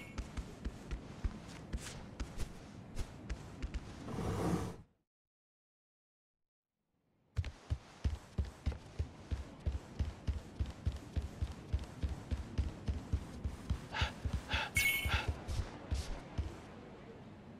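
Footsteps thud quickly on wooden floorboards.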